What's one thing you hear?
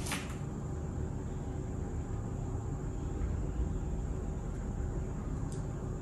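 A plastic bottle cap clicks open.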